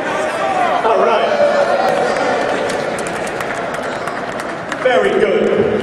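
A large crowd chatters loudly in a big echoing hall.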